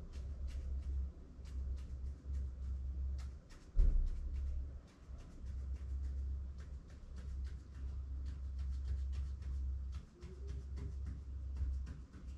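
A pen taps and scratches as a hand writes on a board.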